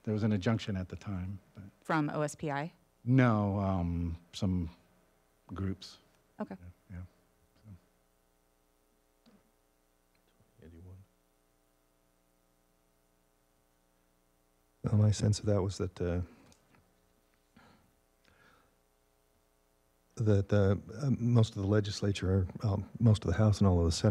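A man speaks calmly through a microphone, with pauses.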